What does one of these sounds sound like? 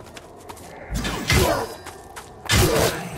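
A heavy weapon swings and strikes with a loud impact.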